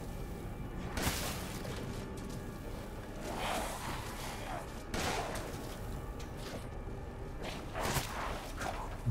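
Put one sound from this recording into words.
A shotgun fires loud blasts, one after another.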